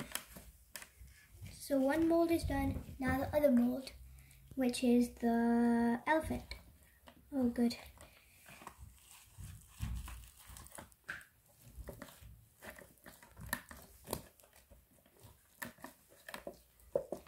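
Plastic sheeting crinkles and rustles under handling.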